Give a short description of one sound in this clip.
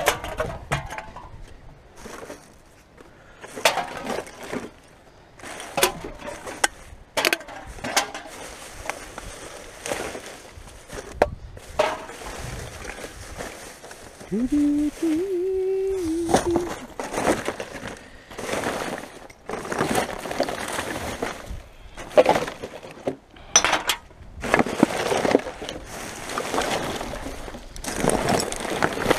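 Plastic bottles and containers knock and clatter against each other.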